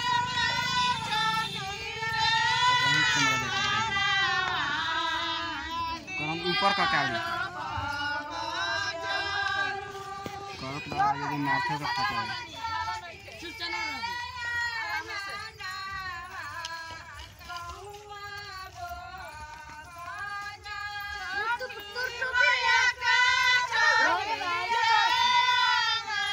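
A group of women sing together in chorus, close by and outdoors.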